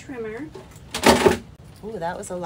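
A paper trimmer is set down on a table with a thud.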